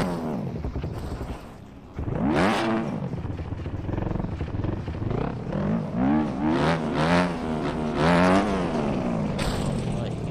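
A motorcycle engine revs up and down repeatedly.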